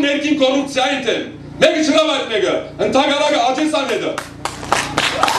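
A man speaks forcefully through a microphone.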